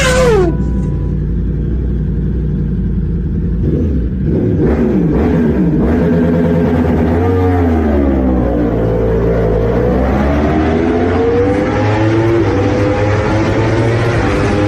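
A motorcycle engine revs hard and roars, echoing in a tunnel.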